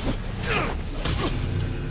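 A beam of energy hums and crackles.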